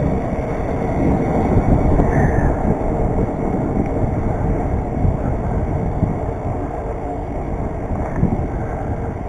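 A vehicle rolls along a paved road with a steady low rumble.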